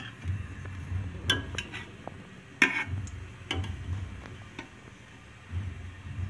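A metal ladle scrapes and clinks against a metal pot.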